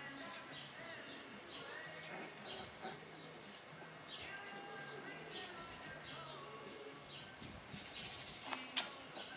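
Puppies yip and whimper as they play.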